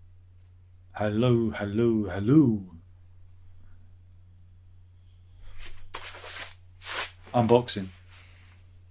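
A man speaks up close, with expression.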